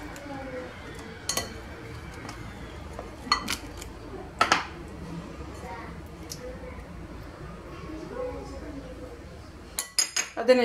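A spoon scrapes and taps against a glass bowl.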